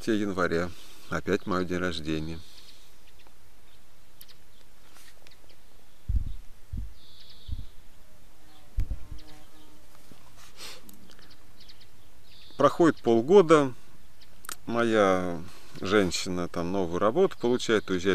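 A young man talks calmly and close up, with pauses.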